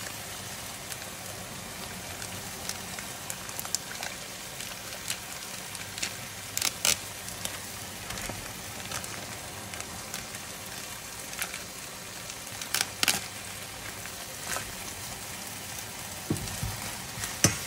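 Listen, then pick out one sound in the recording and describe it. Meat sizzles in a frying pan.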